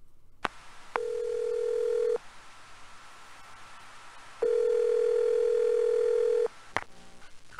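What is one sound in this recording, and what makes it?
An electronic handset sounds a steady, humming ring tone in two long bursts.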